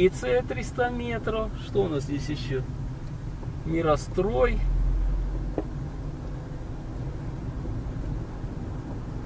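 A car drives along a road with a low, steady rumble.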